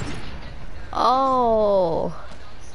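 A short rising and falling victory tune plays in a video game.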